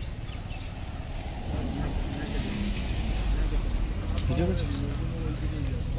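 Leaves rustle softly as a hand handles a fruit on a branch.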